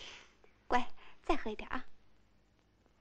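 A woman speaks gently and coaxingly close by.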